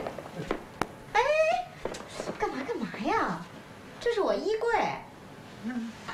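A middle-aged woman exclaims loudly in alarm.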